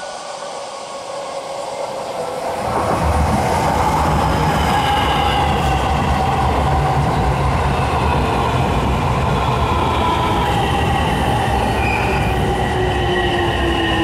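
Train wheels screech and whine along the rails.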